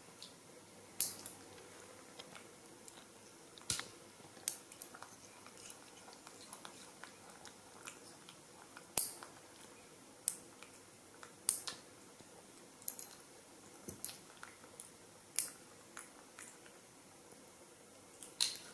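Nail clippers snap with sharp, small clicks again and again.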